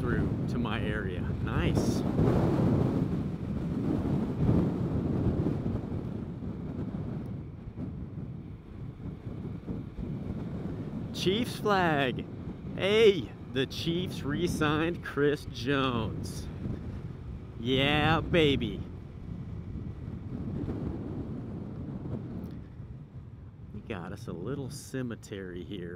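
Wind rushes past the rider, loudest at the start.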